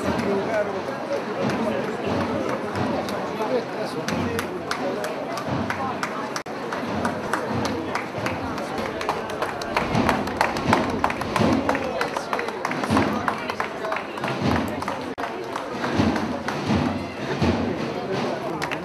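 A crowd of men murmurs and talks nearby, outdoors.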